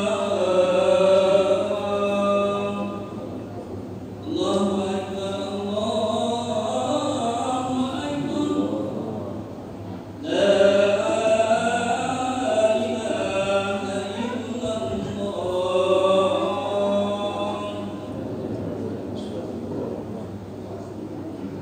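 A man chants in long melodic phrases through a loudspeaker, echoing in a large hall.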